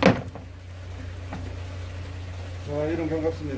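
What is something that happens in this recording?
Wet fish slap down onto a plastic board.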